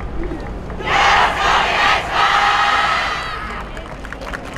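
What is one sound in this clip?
A large group of dancers shouts in unison outdoors.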